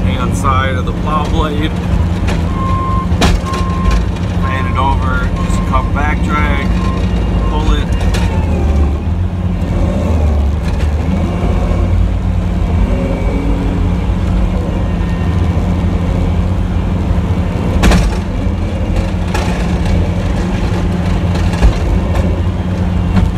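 A truck engine rumbles steadily, low and close.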